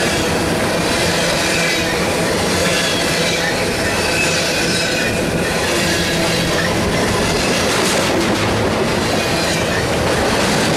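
A freight train rumbles past close by, its wheels clattering and squealing on the rails.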